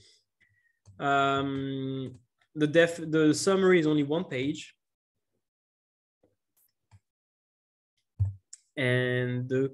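A young man speaks calmly and clearly into a close microphone, in short bursts with pauses.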